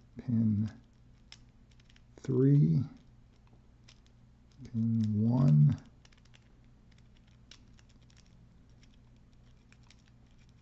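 A small metal tool clicks and scrapes lightly on a hard surface.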